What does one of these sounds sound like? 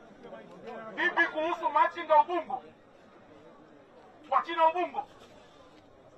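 A crowd of men shouts in the distance.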